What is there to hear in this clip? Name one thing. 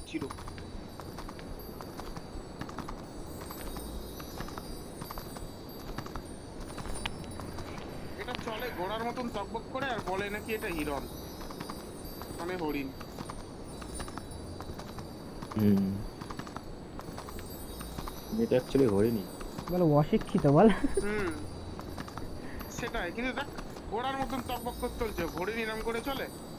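A horse gallops with steady hoofbeats.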